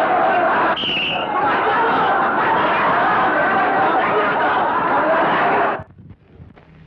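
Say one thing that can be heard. A man shouts wildly.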